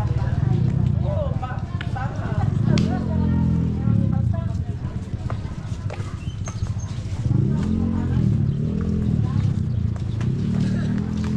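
Footsteps scuff along a paved street outdoors.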